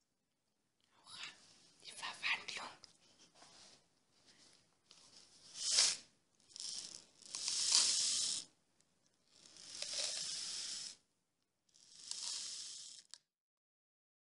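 Small beads rattle and patter onto a cloth.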